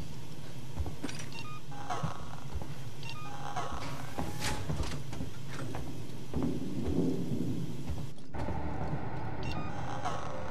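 Short electronic beeps sound from a menu.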